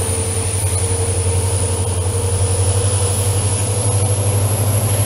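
Train wheels rumble and rattle along the track.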